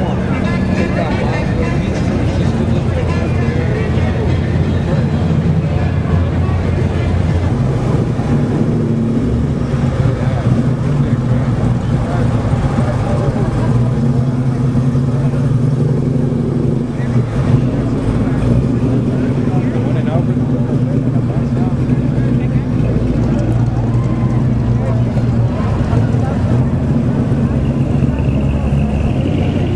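A crowd chatters in the background outdoors.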